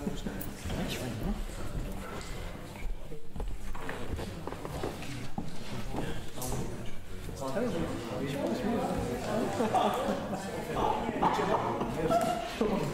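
Several men talk at once in a room that echoes a little.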